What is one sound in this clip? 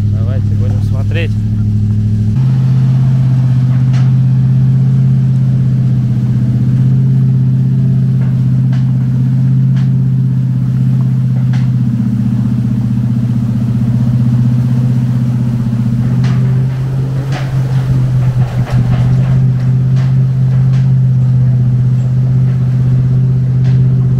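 A heavy truck engine drones steadily.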